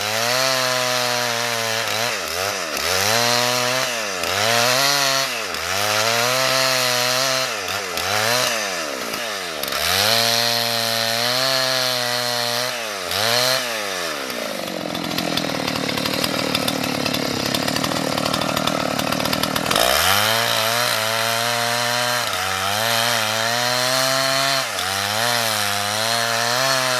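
A chainsaw engine roars and revs up and down repeatedly, close by.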